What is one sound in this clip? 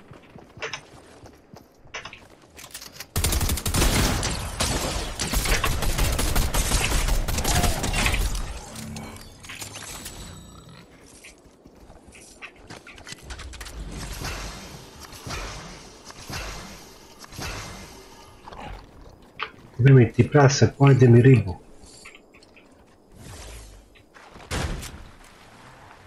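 A pickaxe swings and strikes in a video game.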